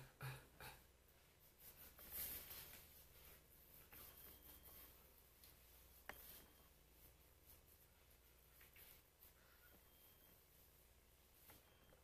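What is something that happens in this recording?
A cloth rubs softly across a face.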